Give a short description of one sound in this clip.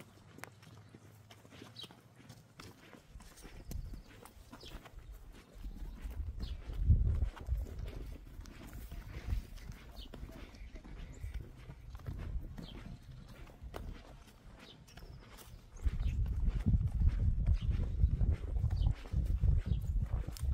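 Footsteps crunch over grass and loose stones outdoors.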